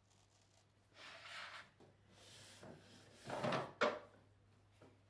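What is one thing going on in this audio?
A curved strip of plasterboard scrapes against an arch as it is pressed into place.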